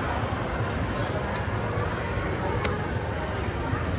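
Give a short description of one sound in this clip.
Casino chips click onto a felt table.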